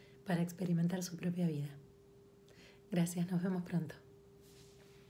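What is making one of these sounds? A woman speaks close up, warmly and with animation.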